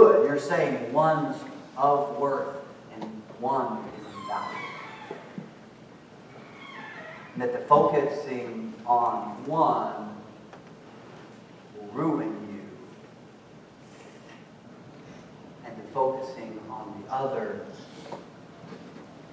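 A young man speaks with animation to an audience in a room with a slight echo, with pauses between phrases.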